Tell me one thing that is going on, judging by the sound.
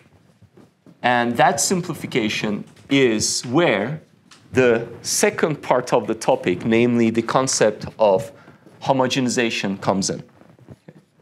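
A young man lectures calmly through a microphone.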